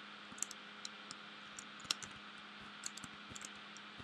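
A torch is placed on a wall with a soft click.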